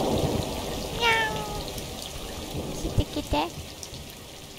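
A cat meows.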